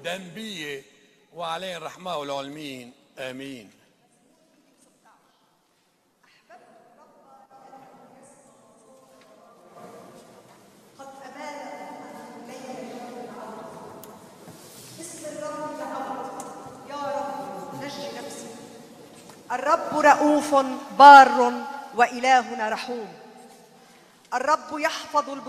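A middle-aged woman reads out through a microphone in a large echoing hall.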